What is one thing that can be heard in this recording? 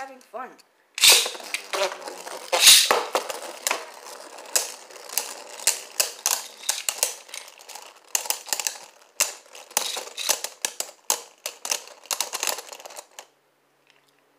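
Spinning tops whirr and clash against each other in a plastic arena.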